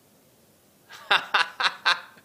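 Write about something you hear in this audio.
A man laughs.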